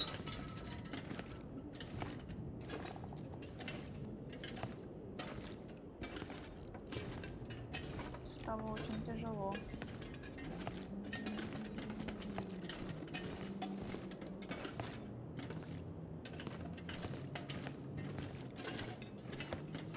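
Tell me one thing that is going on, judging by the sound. Footsteps thud slowly and steadily on a hard floor.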